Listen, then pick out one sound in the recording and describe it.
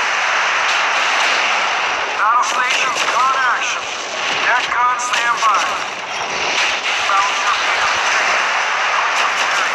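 Explosions rumble on a burning ship.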